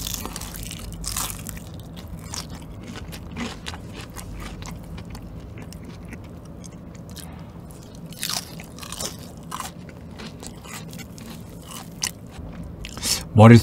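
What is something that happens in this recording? A man chews with his mouth close to a microphone.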